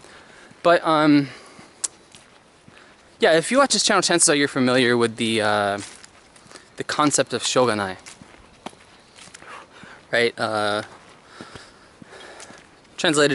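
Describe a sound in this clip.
A young man talks calmly close by, with pauses.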